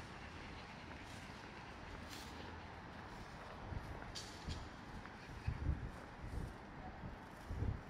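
Steady distant city traffic hums in the background.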